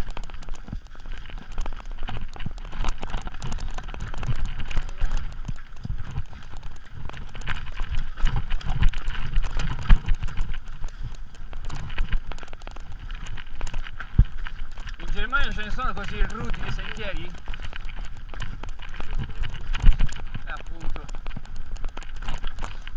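Mountain bike tyres rumble and crunch over a rough, stony dirt trail.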